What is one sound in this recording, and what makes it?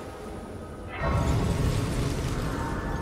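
A bright shimmering chime swells up and rings out.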